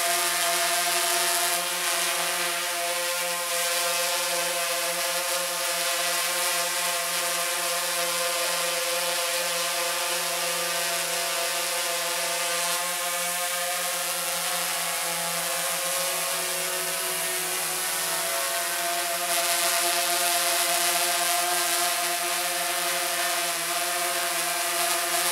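A quadcopter drone's propellers whine as it hovers overhead.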